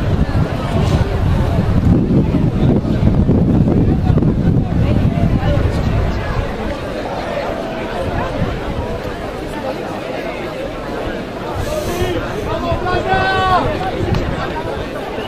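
Men talk and call out at a distance across an open field.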